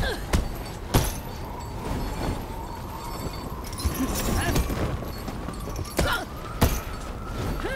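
Heavy blows land with sharp thuds in a fight.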